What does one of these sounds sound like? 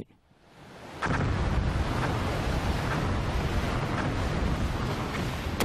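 Stormy sea waves crash and roar loudly.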